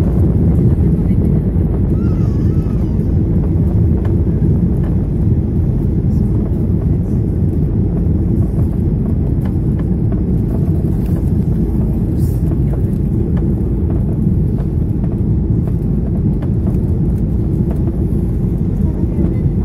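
An aircraft engine roars steadily from inside the cabin.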